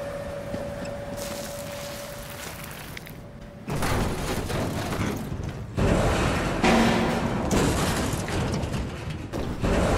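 Footsteps run quickly across a hard roof.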